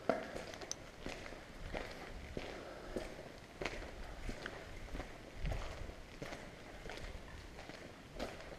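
Footsteps crunch over debris and broken glass in a large echoing hall.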